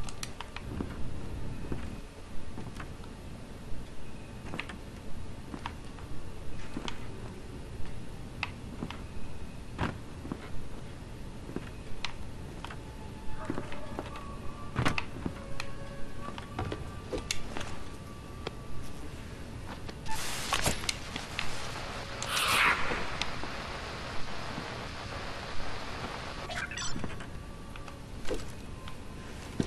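Footsteps thud steadily on wooden boards.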